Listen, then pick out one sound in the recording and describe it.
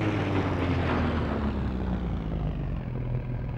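A racing car's engine winds down, its pitch falling steadily.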